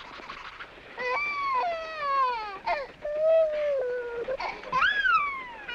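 A small child wails and sobs loudly.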